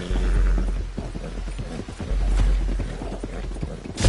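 Horse hooves pound on wooden planks at a gallop.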